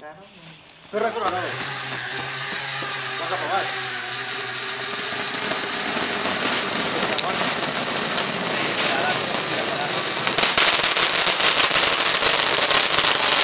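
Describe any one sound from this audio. A firework fountain roars and hisses loudly.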